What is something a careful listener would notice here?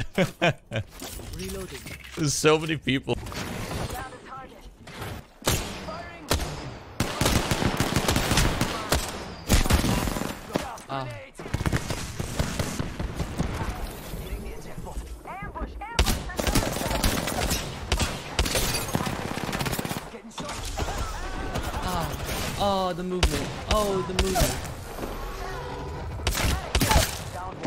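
A young man talks with animation into a microphone, close by.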